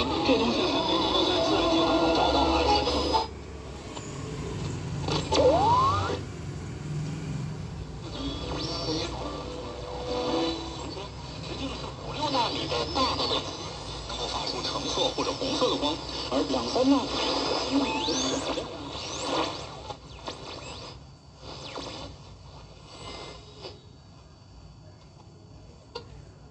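A small radio crackles, whistles and blares snatches of sound as its dial is turned.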